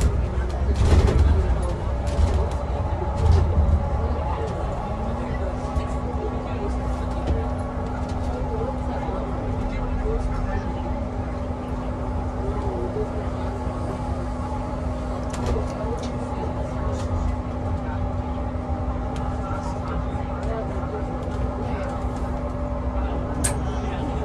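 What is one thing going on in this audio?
A bus engine hums steadily from inside as the bus drives along a road.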